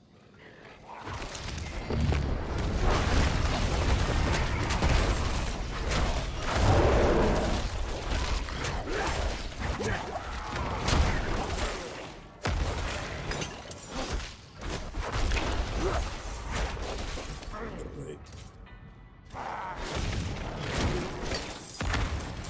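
Game weapons slash and strike with rapid impacts.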